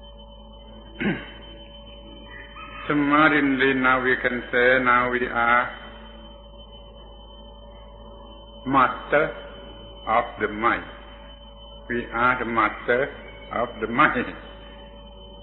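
An elderly man speaks calmly, in pauses, through a recording.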